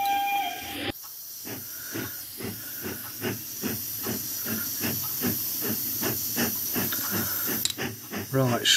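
Compressed air hisses steadily from a nozzle.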